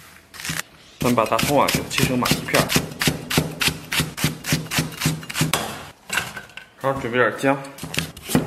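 A knife chops quickly on a wooden board.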